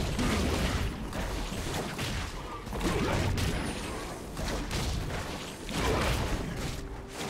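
Game characters clash in a fight with magic sound effects.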